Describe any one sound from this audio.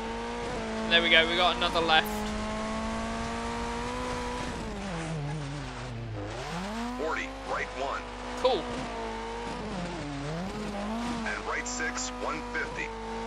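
A rally car engine roars at high revs, dropping and rising as it shifts gears.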